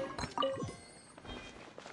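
A treasure chest opens with a bright chime.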